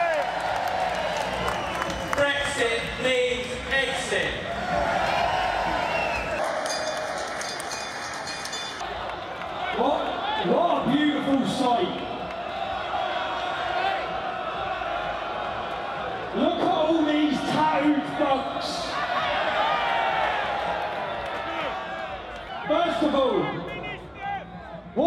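A large outdoor crowd cheers and chants loudly.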